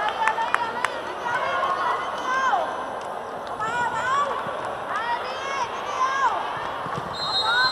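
A large crowd cheers and chatters in an echoing arena.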